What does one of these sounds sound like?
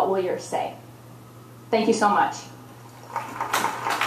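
A young woman speaks through a microphone.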